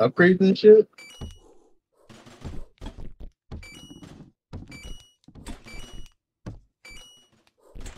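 Short electronic blips sound as menu options are picked.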